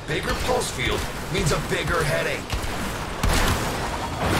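Energy weapons fire in loud, rapid bursts.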